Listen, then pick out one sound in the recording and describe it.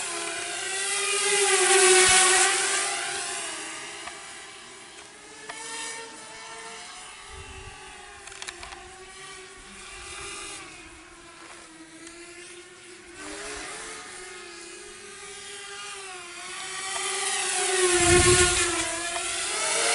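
A small drone's propellers whine steadily, growing loud as it passes close at about two seconds and again near eighteen seconds.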